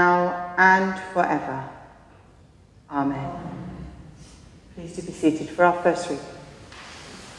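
A woman chants with a clear ringing voice in a large echoing hall.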